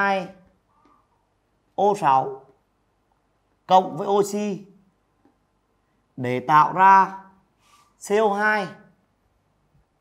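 A man speaks calmly in short phrases, close to a microphone.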